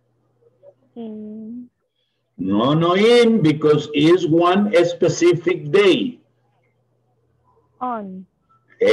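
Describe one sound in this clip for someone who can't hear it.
A man speaks through an online call microphone, in a clear teaching voice.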